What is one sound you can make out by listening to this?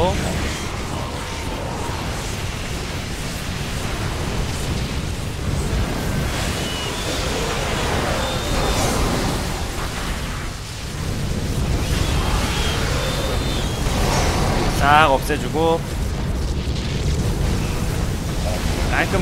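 Laser beams and blasts crackle and boom in a game battle.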